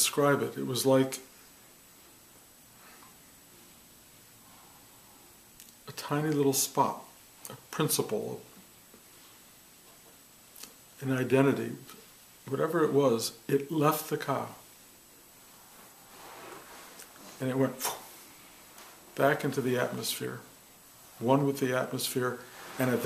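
An older man speaks calmly close by, in short bursts with pauses.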